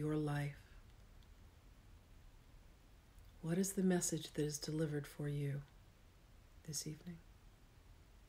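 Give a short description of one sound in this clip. A middle-aged woman speaks softly and slowly, with long pauses, close to a microphone.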